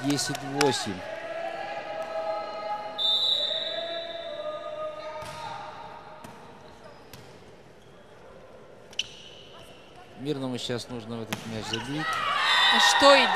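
A crowd murmurs in the stands of the hall.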